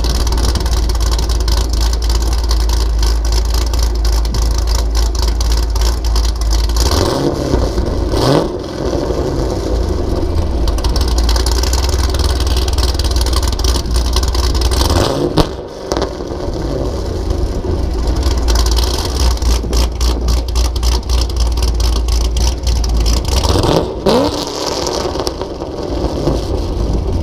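A car engine idles with a deep, rumbling exhaust.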